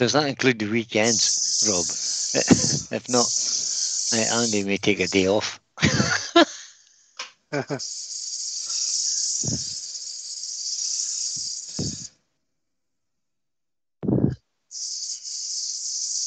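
Sandpaper hisses against wood spinning on a lathe.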